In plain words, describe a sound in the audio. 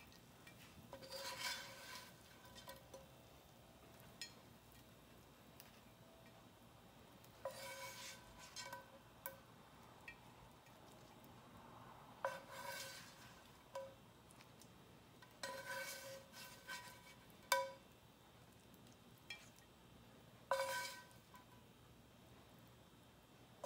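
A metal spatula scrapes and clinks against a ceramic plate.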